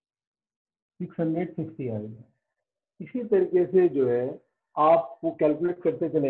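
A man speaks calmly through a close microphone, explaining.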